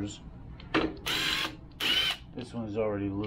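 A cordless impact wrench whirs in short bursts.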